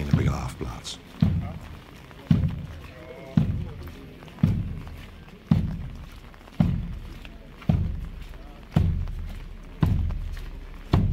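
A bass drum booms in a slow, steady marching beat outdoors.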